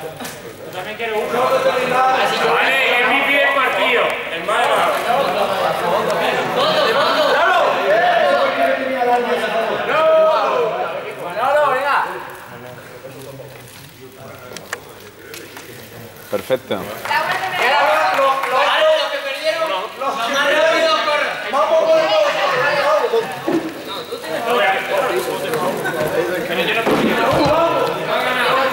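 Young men talk in a large echoing hall.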